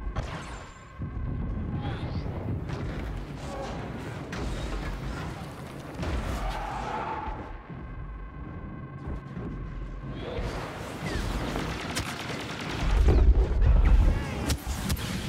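Explosions boom with deep rumbles.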